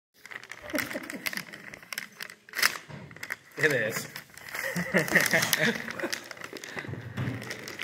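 Wrapping paper crinkles and tears.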